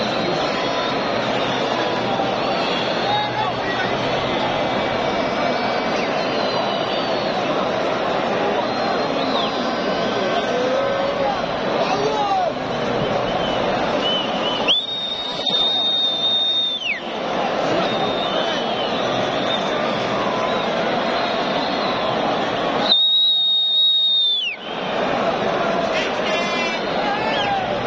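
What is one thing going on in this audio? A large crowd cheers and chants loudly in an echoing stadium.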